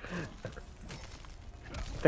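Ice shatters with a sharp crash.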